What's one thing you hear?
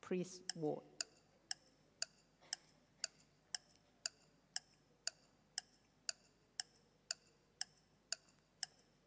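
A countdown timer ticks steadily.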